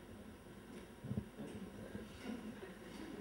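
An elderly woman laughs softly.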